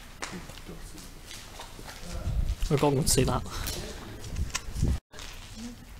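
Footsteps scuff on a gritty concrete floor in a large echoing hall.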